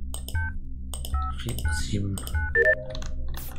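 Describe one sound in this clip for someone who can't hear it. Electronic keypad buttons beep in quick succession.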